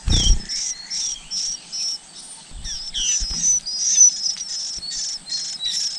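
Baby birds cheep shrilly and rapidly, begging for food.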